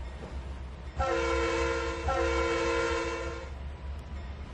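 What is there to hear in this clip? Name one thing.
A train horn blows twice.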